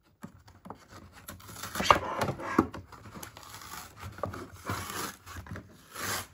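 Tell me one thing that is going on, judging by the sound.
Plastic packaging crinkles and crackles as a doll box is pulled out.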